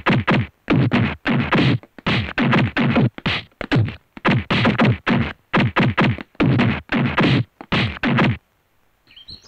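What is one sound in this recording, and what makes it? Blows thud during a brawl.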